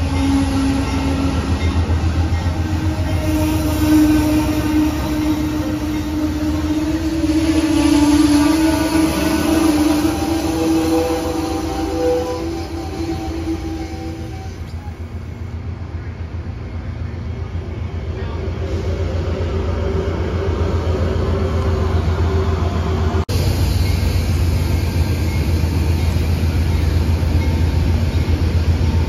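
A passenger train rolls past close by with a steady, heavy rumble.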